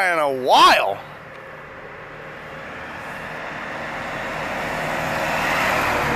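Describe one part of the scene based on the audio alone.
A truck engine rumbles as the truck approaches, growing steadily louder.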